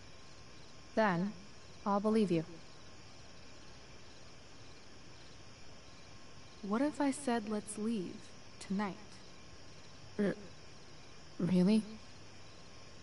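A second young woman answers in a soft, hesitant voice.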